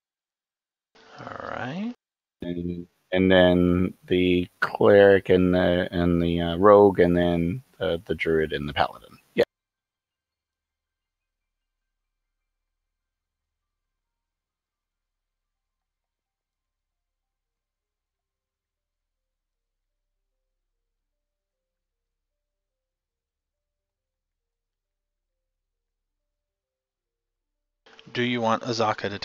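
A man talks over an online call, close to a headset microphone.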